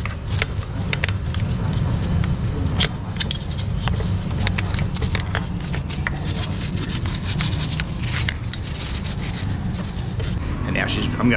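A stiff brush scrubs wet metal with quick scraping strokes.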